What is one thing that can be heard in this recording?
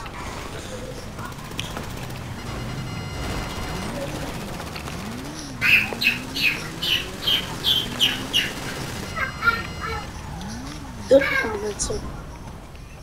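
A dirt bike engine revs up and down.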